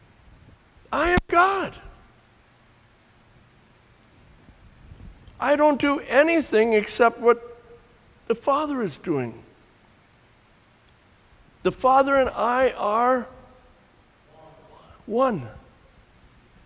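An elderly man speaks expressively in short bursts, close by, with pauses between.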